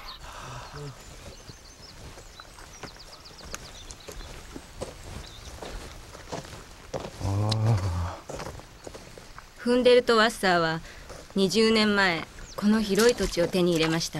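Footsteps crunch on a dirt path.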